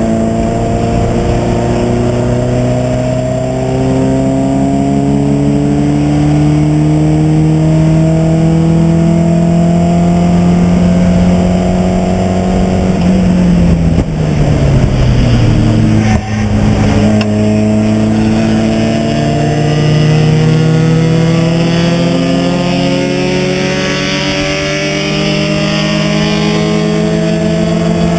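A race car engine roars loudly from inside the cabin, its pitch rising steadily as it speeds up.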